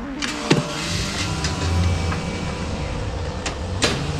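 A car's rear door is pulled open.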